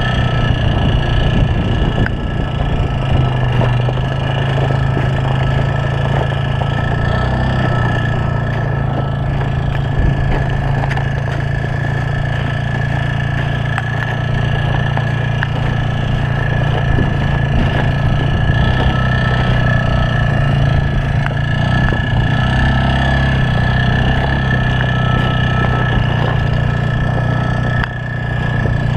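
A quad bike engine drones steadily nearby.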